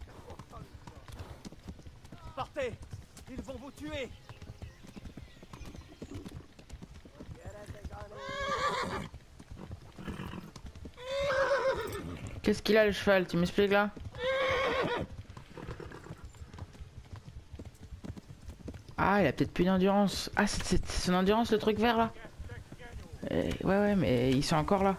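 A horse's hooves thud steadily on a dirt road.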